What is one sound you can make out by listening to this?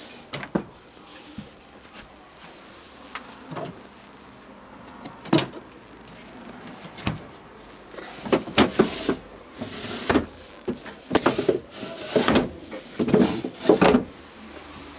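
Hands click and knock against plastic and wooden fittings.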